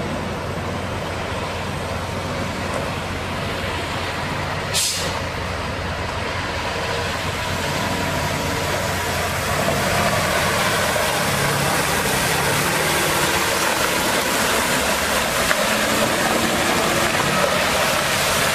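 A truck engine idles and rumbles.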